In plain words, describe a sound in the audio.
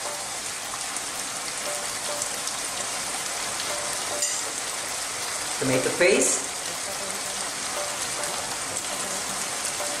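Food sizzles steadily in a pan.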